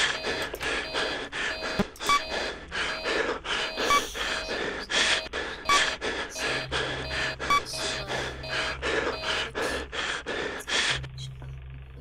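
A rapid electronic beeping pulses from a game.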